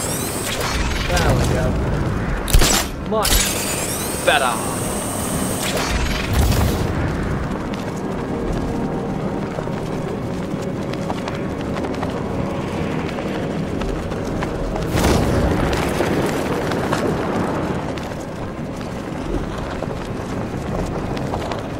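Wind rushes past steadily during a long glide.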